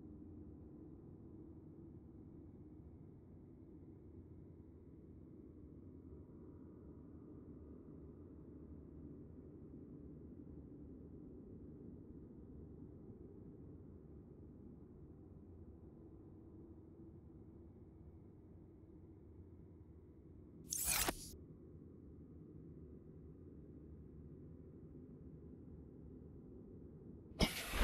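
A low, muffled underwater rumble drones steadily.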